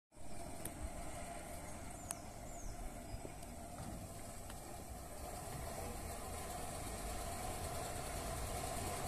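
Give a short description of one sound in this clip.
A car engine hums as it slowly approaches.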